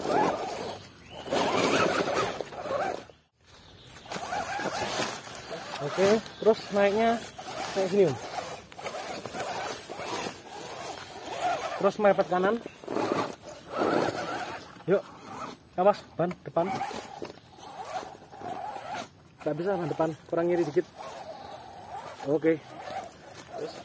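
A small electric motor whirs and strains in bursts.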